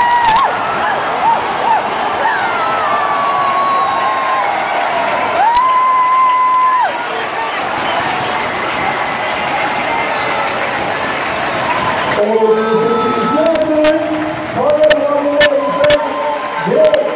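A large stadium crowd cheers and sings loudly.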